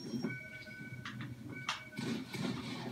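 Video game sound effects chime and ring from a television speaker.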